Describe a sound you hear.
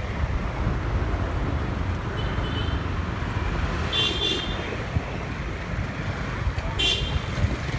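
Cars and motorbikes drive along a street.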